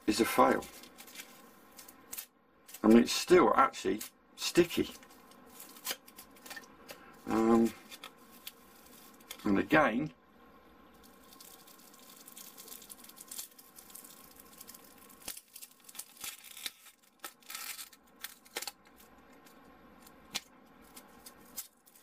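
Light plastic pieces click and rustle softly as hands handle them.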